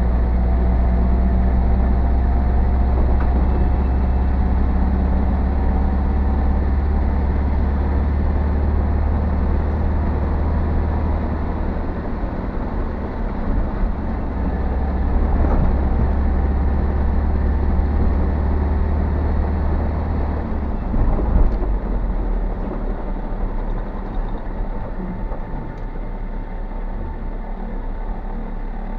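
Tyres rumble and thump over a rough, bumpy road.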